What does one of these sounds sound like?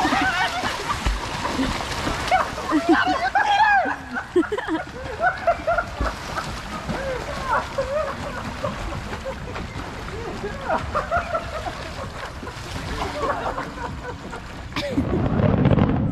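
Water splashes as swimmers kick and paddle.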